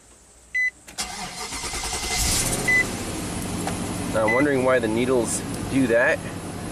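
A car engine starts up and idles with a low, steady rumble.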